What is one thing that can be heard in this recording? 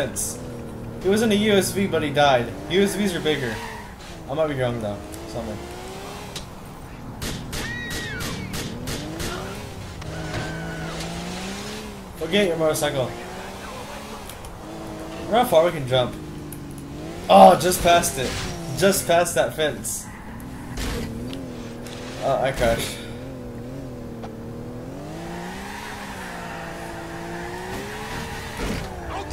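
Car tyres screech while the car skids.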